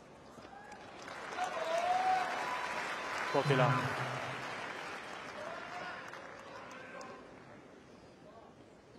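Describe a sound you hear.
A large crowd cheers and applauds, then fades.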